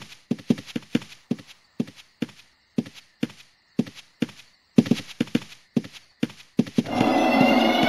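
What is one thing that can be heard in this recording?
Footsteps tread quickly and evenly on the ground.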